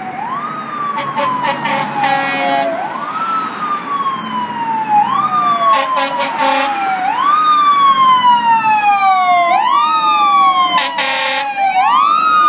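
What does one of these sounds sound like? A fire engine's air horn blares in short blasts.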